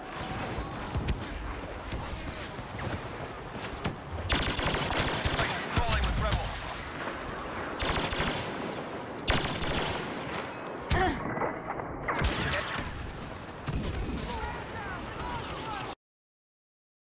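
A laser rifle fires in quick bursts of shots.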